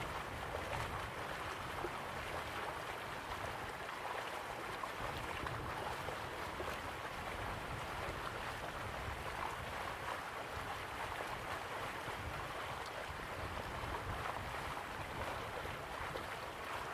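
A waterfall roars steadily.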